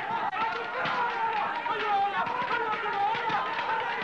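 Men in a crowd cheer loudly.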